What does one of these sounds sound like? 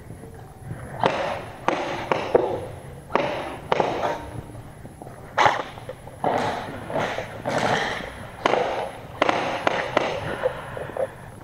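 An airsoft rifle fires in short bursts, echoing in a large hall.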